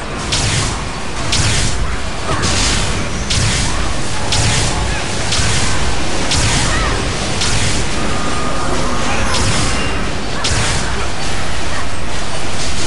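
Magic spells whoosh and crackle in repeated bursts during a video game fight.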